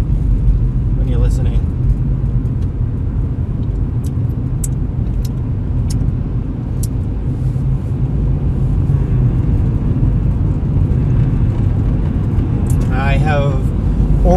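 A car engine and tyres rumble steadily on the road from inside the car.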